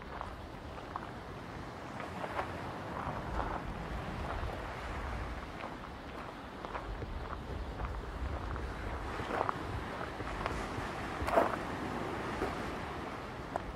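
Small waves wash softly onto a pebble beach nearby.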